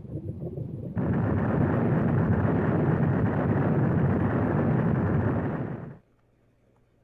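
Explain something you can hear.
A deep rumbling roar swells and then cuts off.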